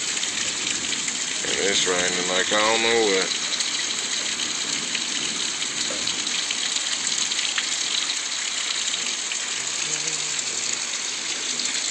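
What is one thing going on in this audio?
Heavy rain falls steadily outdoors, hissing on pavement and grass.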